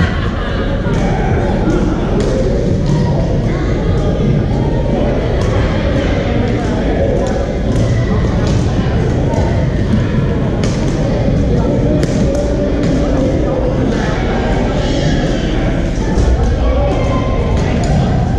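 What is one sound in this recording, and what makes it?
Voices and game noise echo around a large hall.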